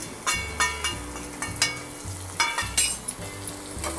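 A metal spoon clinks against a steel pot.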